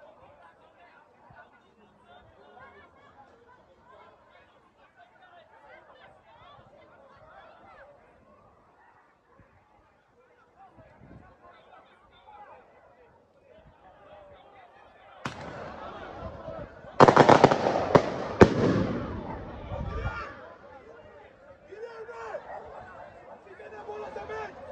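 Distant players shout to each other across an open outdoor pitch.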